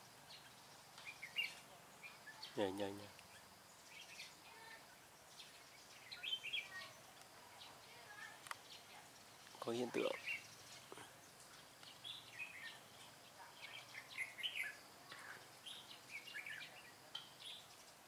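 Red-whiskered bulbuls sing and call outdoors in short, bright, chattering phrases.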